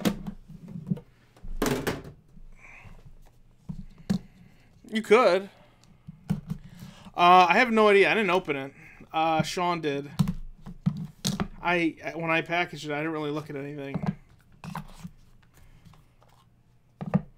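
Cardboard boxes are handled and tapped together.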